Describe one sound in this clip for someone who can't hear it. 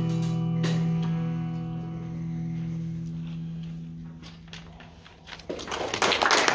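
A jazz band holds a final chord that slowly fades.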